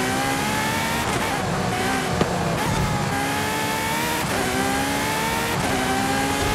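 A car engine revs hard, rising in pitch and dropping briefly with each gear change.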